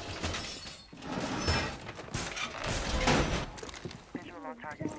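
Metal panels clank and bang as a wall is reinforced.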